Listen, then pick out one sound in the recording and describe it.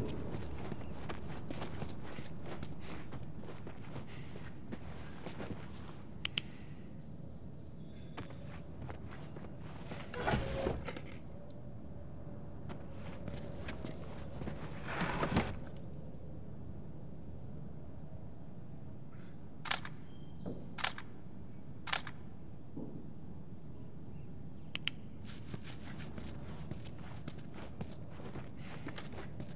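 Footsteps crunch over a gritty floor.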